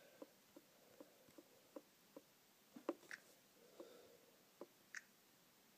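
A fingertip taps lightly on a touchscreen.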